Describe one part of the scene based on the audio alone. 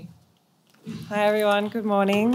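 A woman starts speaking calmly into a microphone.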